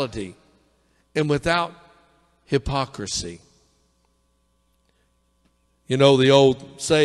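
A middle-aged man speaks forcefully into a microphone outdoors, with pauses between phrases.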